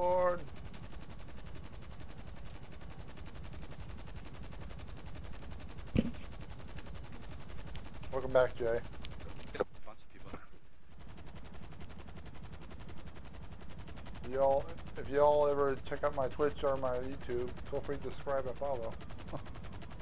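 A helicopter's rotors whir steadily.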